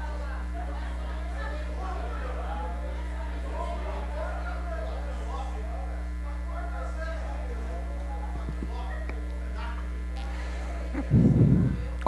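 Distant voices murmur in a room.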